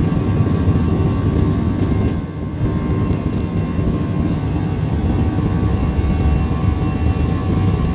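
Aircraft wheels rumble over the runway.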